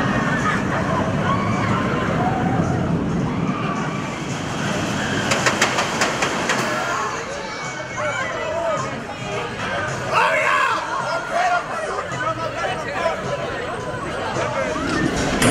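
A roller coaster roars along its track.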